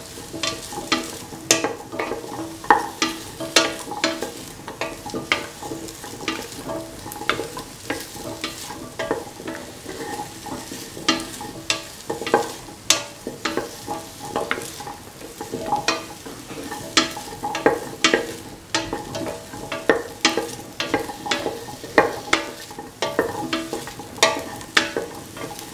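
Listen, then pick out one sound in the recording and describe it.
A spoon scrapes and clinks against a metal pot while stirring.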